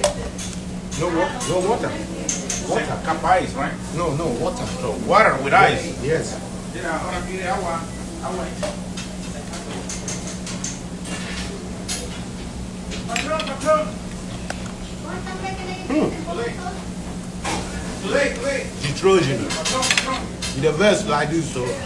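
A young man talks casually and close by.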